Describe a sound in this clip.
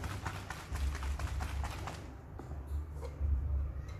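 A plastic bottle is set down on a hard floor.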